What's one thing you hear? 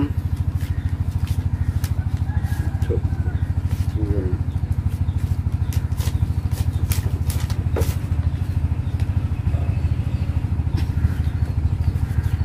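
Cards shuffle and snap softly in a man's hands.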